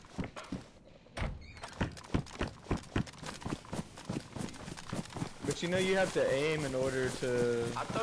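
Footsteps crunch quickly through grass and brush.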